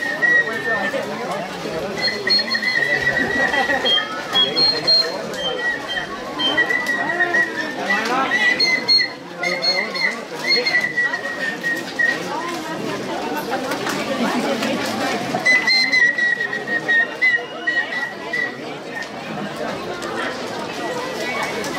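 A crowd of men, women and children chatters outdoors.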